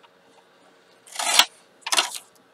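A paper trimmer blade slices through card with a quick swish.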